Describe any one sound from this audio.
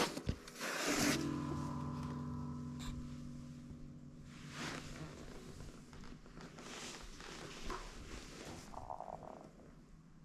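Guitar strings are brushed and ring out, slowly fading.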